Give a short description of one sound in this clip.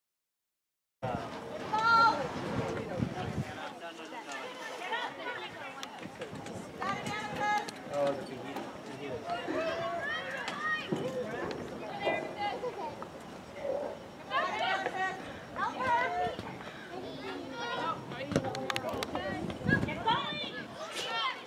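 Young women shout and call out across an open field.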